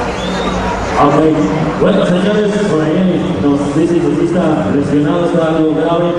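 A man speaks loudly through a microphone over a loudspeaker, heard in an echoing arena.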